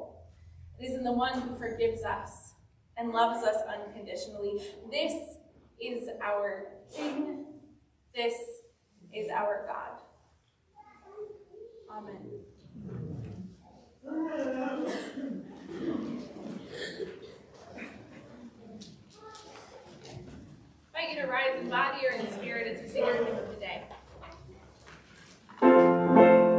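A woman speaks steadily into a microphone in a softly echoing room.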